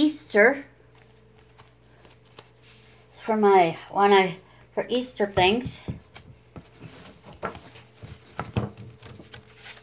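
Pages of a book rustle as they are flipped.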